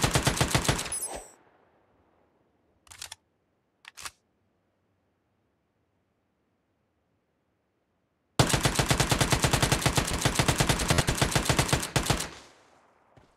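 Rapid automatic gunfire rattles in fast bursts.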